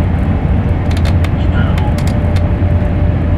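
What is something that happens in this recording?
A control lever clicks into place.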